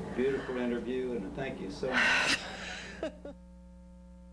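An elderly woman speaks with animation, close to a microphone.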